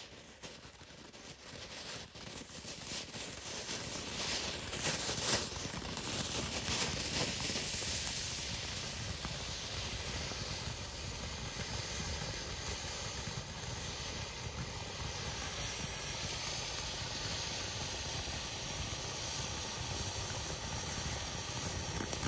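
Small firework bursts crackle and pop.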